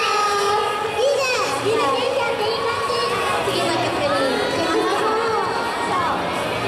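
Young women talk and call out excitedly over loudspeakers.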